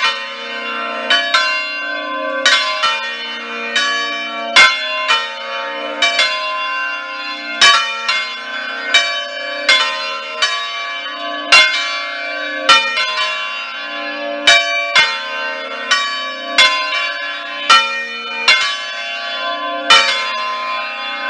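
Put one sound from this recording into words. Large bells swing and ring loudly close by, their strikes overlapping in a continuous clanging peal.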